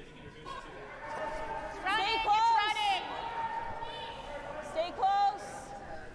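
A young woman shouts loudly across an echoing rink.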